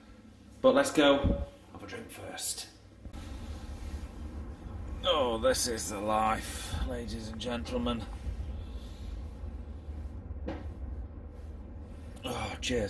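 A middle-aged man talks casually, close to the microphone.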